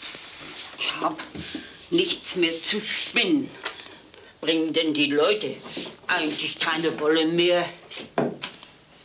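An elderly woman speaks calmly.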